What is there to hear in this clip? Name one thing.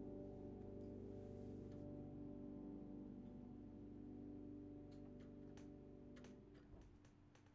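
A piano chord rings out and slowly fades away.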